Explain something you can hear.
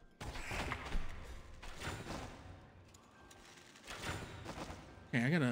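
Video game sound effects play.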